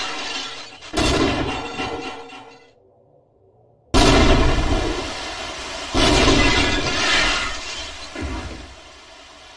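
Drink cans clatter onto a hard floor.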